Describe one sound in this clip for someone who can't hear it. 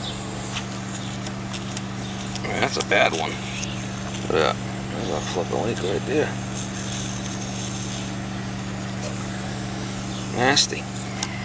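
A small metal cap scrapes softly as it is screwed onto a valve.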